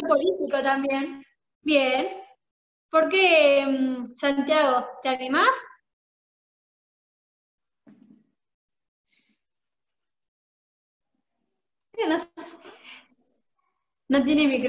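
A young woman talks calmly, heard through an online call.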